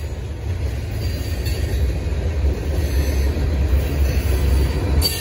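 A freight train rumbles past on the tracks with a steady low roar.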